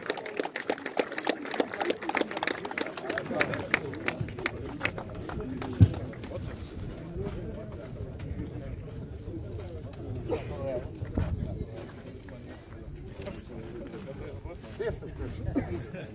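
Men chat quietly nearby outdoors.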